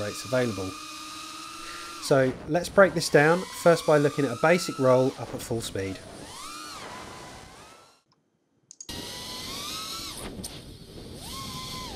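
Small drone motors whine, rising and falling in pitch.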